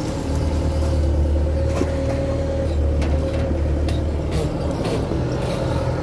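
Hydraulics whine as an excavator arm moves.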